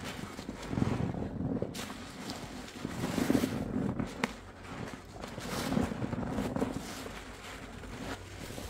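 Soap foam crackles and pops softly.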